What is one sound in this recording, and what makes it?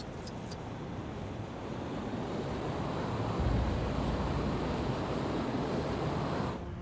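Wind rushes steadily during flight.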